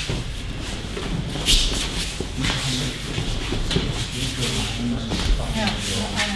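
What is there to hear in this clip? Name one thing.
Bodies thud onto mats in a large echoing hall.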